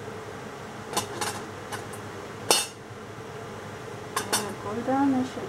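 Metal utensils clink against each other.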